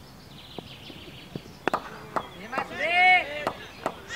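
A cricket ball knocks against a bat.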